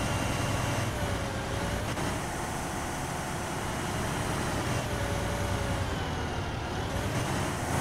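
An armoured vehicle's engine rumbles steadily as it drives.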